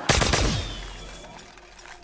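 Electric crackling sparks around a machine.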